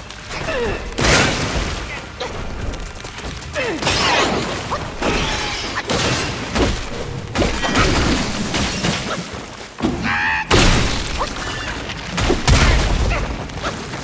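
Heavy thuds and crashes shake the ground.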